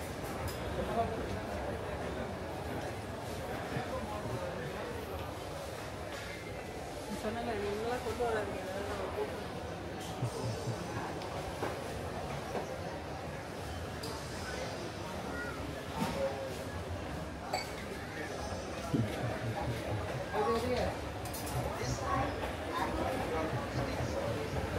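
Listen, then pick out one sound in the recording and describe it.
Men and women talk quietly in the background of a large indoor space.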